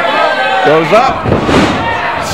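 A wrestler's body slams heavily onto a ring mat.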